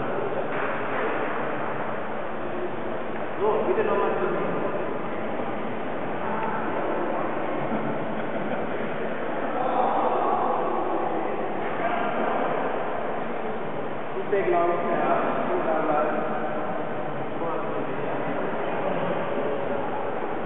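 A crowd of men chatter and talk over one another in a large echoing hall.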